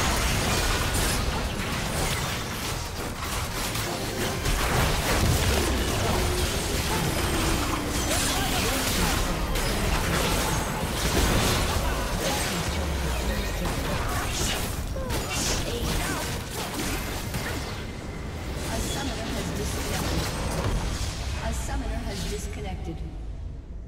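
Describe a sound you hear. Magic spells burst, whoosh and crackle rapidly in a hectic fight.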